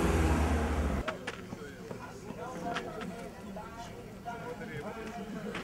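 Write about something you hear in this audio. Young men talk and call out nearby outdoors.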